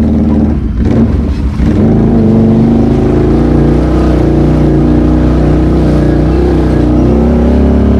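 An all-terrain vehicle engine runs loudly close by.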